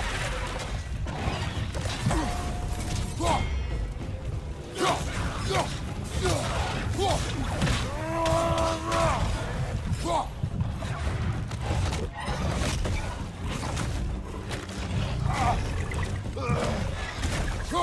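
A large creature roars and snarls.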